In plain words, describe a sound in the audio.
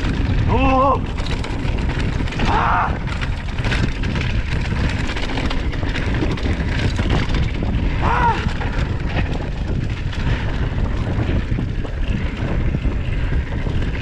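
Bicycle tyres roll and crunch over a bumpy dirt track.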